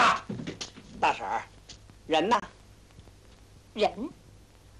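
A woman answers in a raised voice.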